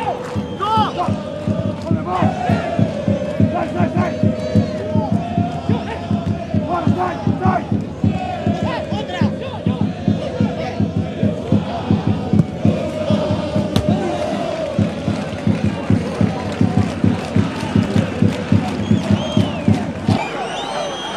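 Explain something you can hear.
A large crowd chants loudly in a stadium.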